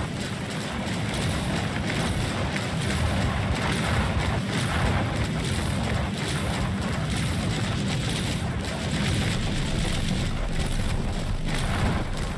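Heavy cannons fire in rapid, repeated bursts.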